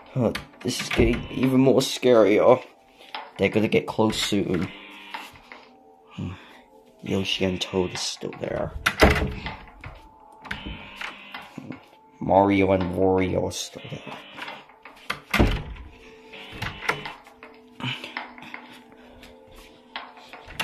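A door handle clicks and rattles.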